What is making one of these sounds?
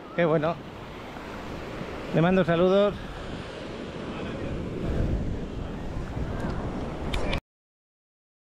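Small waves wash onto the sand and break gently.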